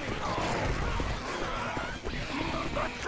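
Zombies snarl and groan close by.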